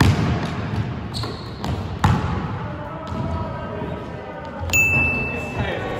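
A basketball hits the rim of a hoop.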